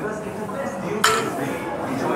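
Heavy weight plates clank down onto the floor.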